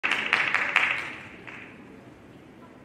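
An audience applauds and cheers in a large hall, then quiets down.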